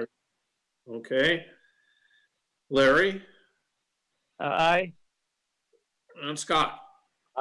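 A man speaks short phrases over an online call, with pauses between them.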